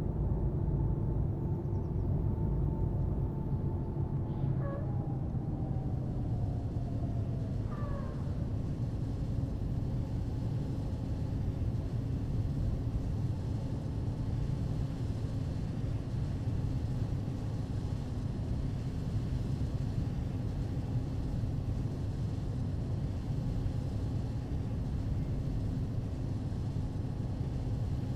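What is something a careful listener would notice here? Tyres roll on a road with a low rumble.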